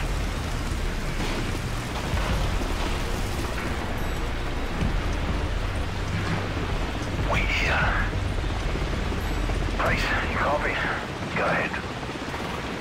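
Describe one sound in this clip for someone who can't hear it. A helicopter rumbles steadily nearby.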